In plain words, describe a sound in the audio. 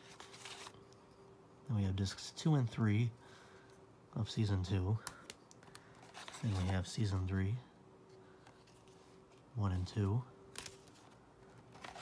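A cardboard disc case rustles and taps as it is handled.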